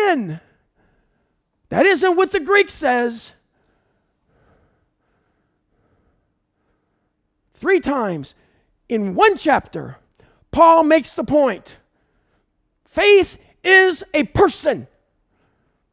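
A middle-aged man speaks in bursts with animation, close to a microphone.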